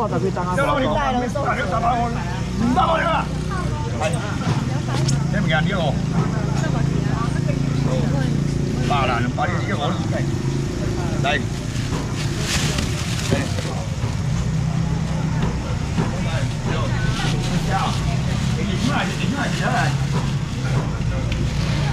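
A crowd of men and women chatters close by and all around.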